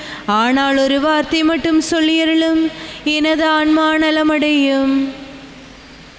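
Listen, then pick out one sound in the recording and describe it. A man chants in a steady sung tone through a microphone in a reverberant hall.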